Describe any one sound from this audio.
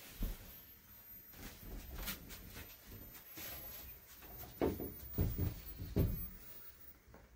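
Soft footsteps shuffle across a straw mat floor.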